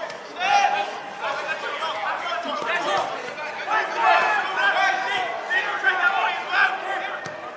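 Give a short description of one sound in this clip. Young children shout and call out to each other outdoors.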